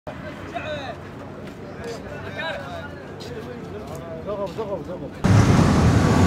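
Men's voices chatter nearby outdoors.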